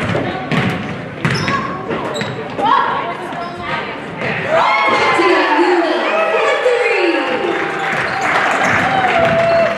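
A crowd of spectators calls out and cheers.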